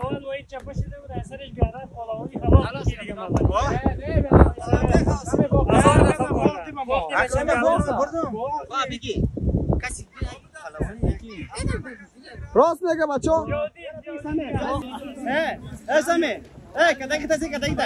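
Several young men talk loudly and with animation close by, outdoors.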